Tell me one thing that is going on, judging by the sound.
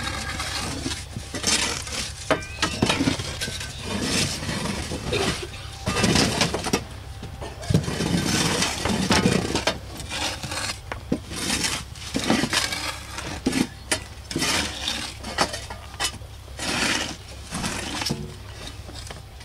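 Dirt thuds as shovelfuls are dropped.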